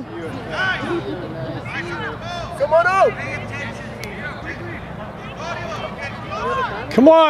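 Young players call out to each other across an open field, heard from a distance.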